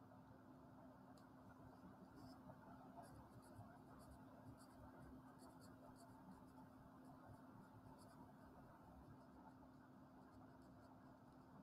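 A felt-tip marker squeaks and scratches on paper.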